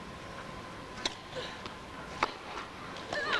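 A tennis ball is struck with sharp pops in a large hall.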